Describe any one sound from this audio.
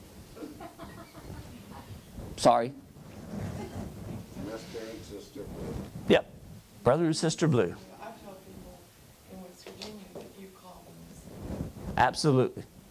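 A middle-aged man speaks with animation into a microphone in a room with some echo.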